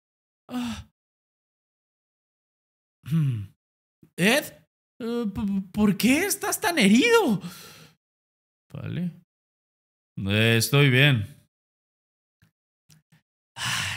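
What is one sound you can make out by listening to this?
A young man speaks with animation close to a microphone, reading out lines in dramatic voices.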